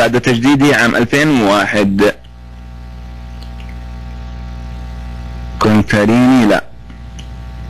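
A young man speaks calmly into a microphone.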